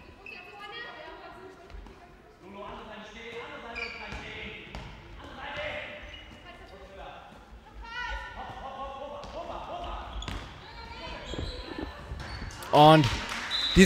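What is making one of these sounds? Players shout and call to each other in a large echoing hall.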